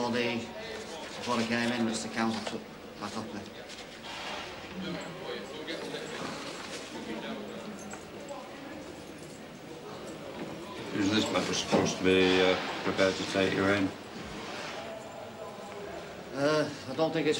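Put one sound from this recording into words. A man speaks nearby in a calm, low voice.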